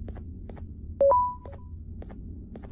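An electronic keypad beeps once.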